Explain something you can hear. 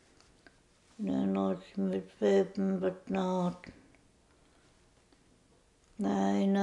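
An elderly woman speaks slowly and quietly, close by.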